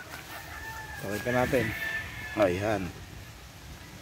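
Roosters crow loudly nearby.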